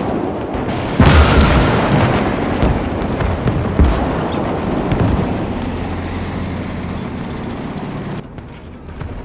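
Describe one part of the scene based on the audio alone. Rockets launch in a rapid roaring salvo.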